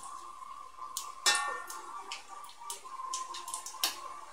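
A metal spoon clinks against the side of a pot.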